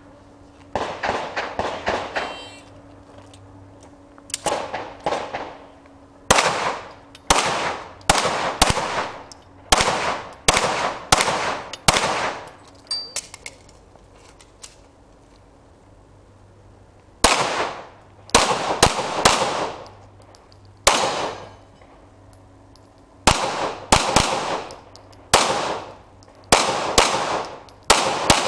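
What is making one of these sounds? Pistol shots crack in quick bursts, echoing under a roof outdoors.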